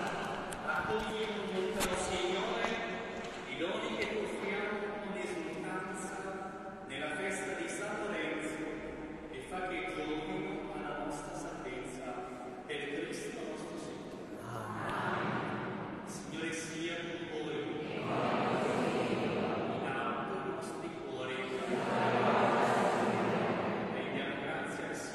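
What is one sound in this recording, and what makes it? A man sings through loudspeakers, echoing in a large hall.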